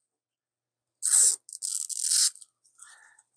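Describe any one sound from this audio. A protective film peels off with a soft crackle.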